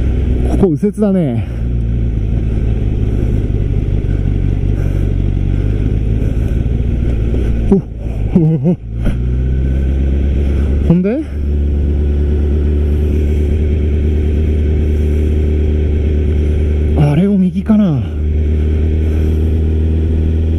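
A motorcycle engine hums steadily up close and rises and falls in pitch as the rider shifts gears.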